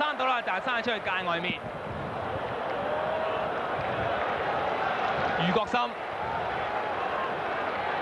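A large crowd murmurs steadily in the distance.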